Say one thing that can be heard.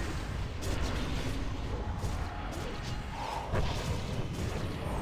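Game spell effects whoosh and crackle in a busy battle.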